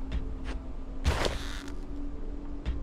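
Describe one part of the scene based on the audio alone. A short rustling clank sounds as armor is put on.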